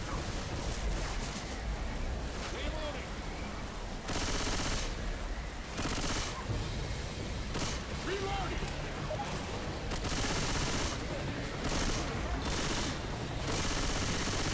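A flamethrower roars in loud bursts of fire.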